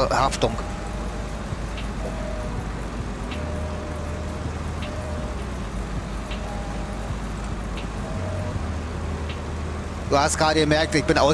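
A heavy truck engine rumbles low and steady as the truck crawls over rocks.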